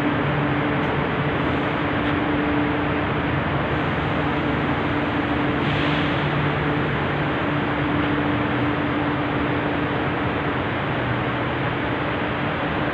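A train engine drones with a steady hum.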